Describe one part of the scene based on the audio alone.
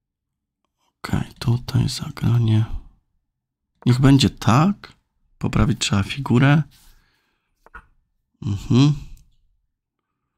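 A man speaks calmly and thoughtfully into a close microphone, in short bursts with pauses.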